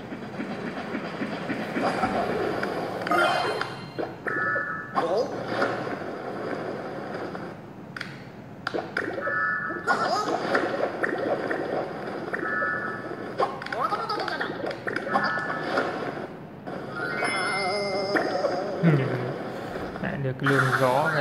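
Upbeat game music plays from a small tablet speaker.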